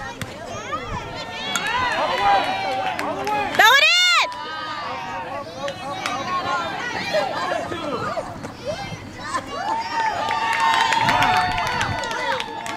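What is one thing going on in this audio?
Young girls shout and cheer loudly outdoors.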